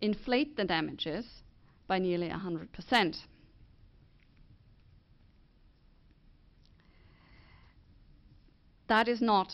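A woman speaks calmly into a microphone, pausing between phrases.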